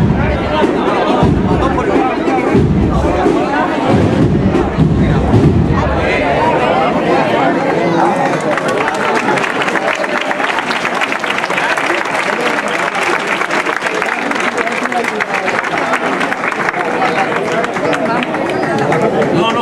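A crowd of men and women murmurs and talks nearby outdoors.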